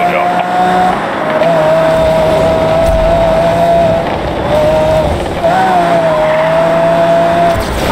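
A sports car engine roars loudly at high speed, its pitch rising and dropping as it shifts gears.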